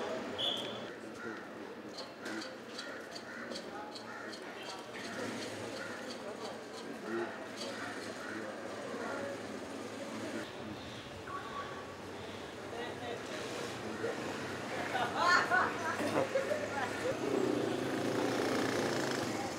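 A middle-aged man talks into a phone close by.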